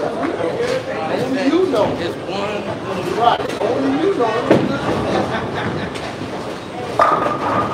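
A young man talks with animation nearby, in a large echoing hall.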